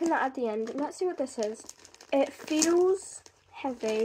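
Wrapping paper crinkles as a present is unwrapped.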